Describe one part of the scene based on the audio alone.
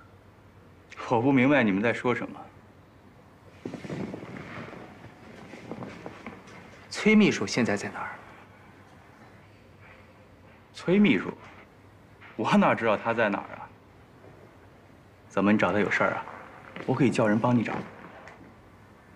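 Another young man answers calmly, close by.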